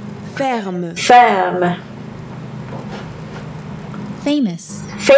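A young woman speaks single words clearly and slowly, close to a microphone.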